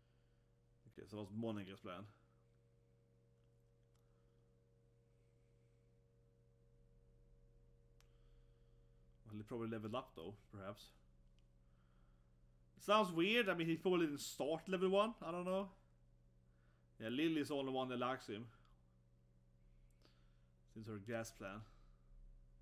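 A man speaks calmly in short bursts close to a microphone.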